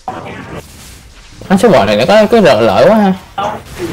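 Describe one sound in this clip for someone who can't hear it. Video game spell and combat sound effects clash and whoosh.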